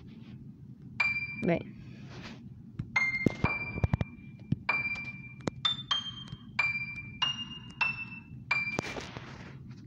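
Single piano notes play one at a time.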